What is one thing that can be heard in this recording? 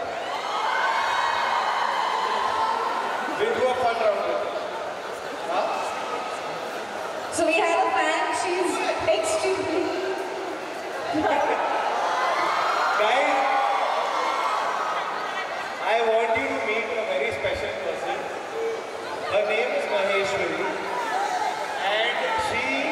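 A young man sings into a microphone, heard through loudspeakers in a large echoing hall.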